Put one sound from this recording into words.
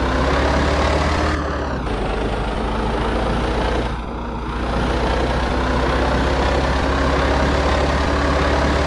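A heavy truck engine hums steadily as the truck drives along.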